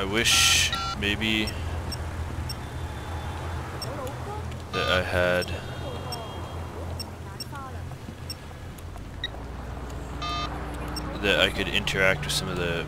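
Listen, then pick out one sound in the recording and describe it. A phone gives short electronic beeps as a menu is opened and scrolled.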